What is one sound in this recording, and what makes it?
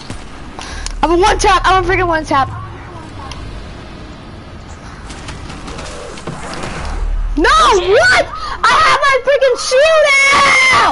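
A young boy shouts excitedly into a close microphone.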